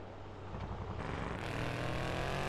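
A buggy engine revs up.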